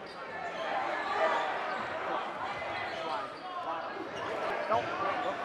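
A crowd murmurs and chatters in a large echoing gym.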